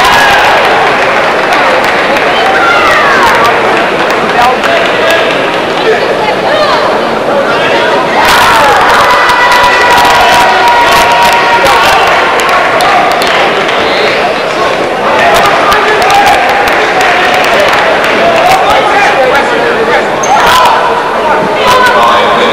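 A large crowd murmurs and cheers in an echoing hall.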